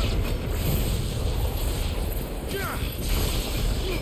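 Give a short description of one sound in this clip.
Electric bolts crackle and snap loudly.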